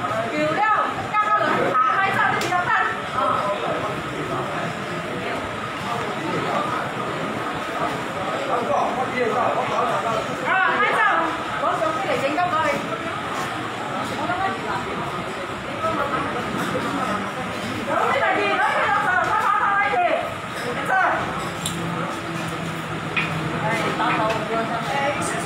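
Men argue loudly, shouting at each other nearby.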